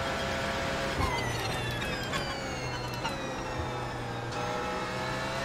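A race car engine drops in pitch as the car brakes and shifts down.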